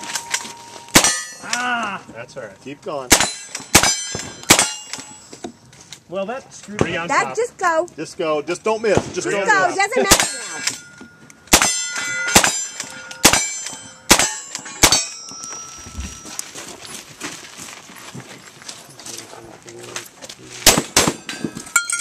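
Gunshots fire in quick bursts, loud and close outdoors.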